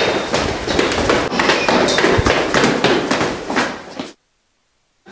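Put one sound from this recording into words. Footsteps climb stairs.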